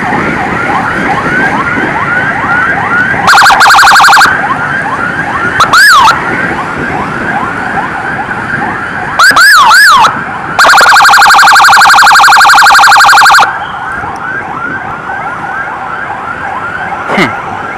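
A siren yelps and wails rapidly nearby.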